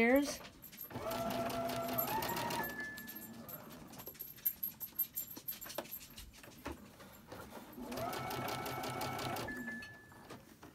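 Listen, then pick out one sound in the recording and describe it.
A sewing machine hums and stitches in short steady bursts.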